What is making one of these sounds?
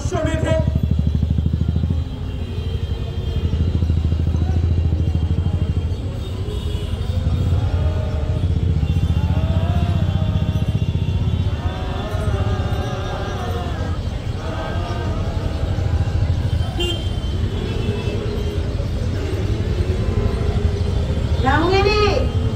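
A man speaks slowly through a loudspeaker outdoors.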